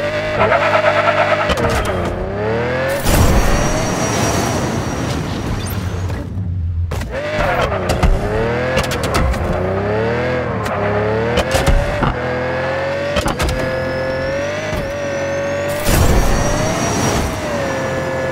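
A small car's engine whines, rising and falling in pitch as it speeds up and slows down.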